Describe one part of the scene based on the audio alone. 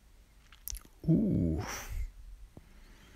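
A magical spell bursts with a deep, booming whoosh.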